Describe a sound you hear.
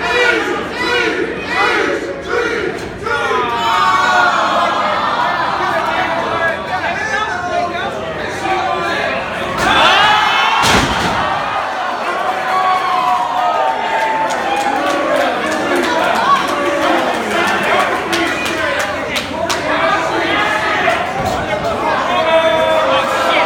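A crowd of men and women shouts and cheers in an indoor hall.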